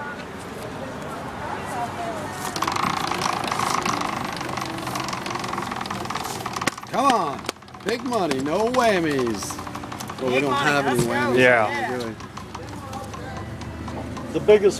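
A prize wheel spins, its pegs clicking rapidly.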